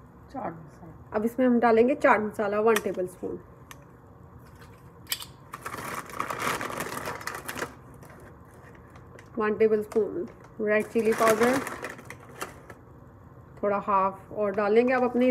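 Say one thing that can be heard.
Ground spice pours softly from a measuring spoon into a metal bowl.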